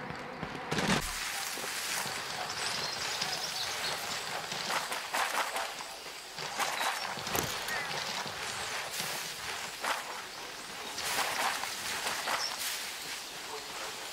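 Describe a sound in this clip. Tall grass rustles as someone moves through it.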